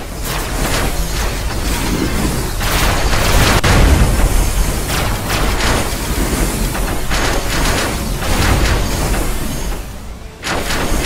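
A deep engine rumble hums steadily.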